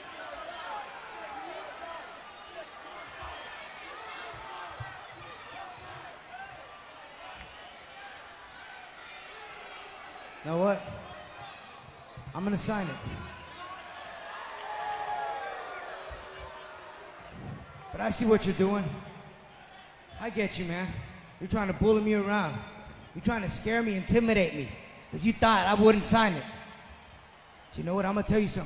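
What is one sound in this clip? A large crowd murmurs and cheers in the background.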